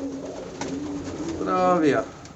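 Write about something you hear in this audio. Pigeons flap their wings in a flurry.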